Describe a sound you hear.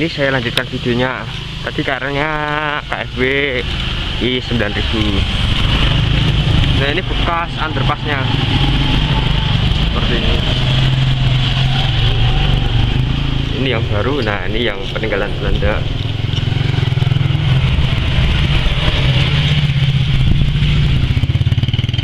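Other motorbikes pass by nearby.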